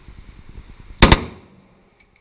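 A rifle fires a single loud shot that echoes.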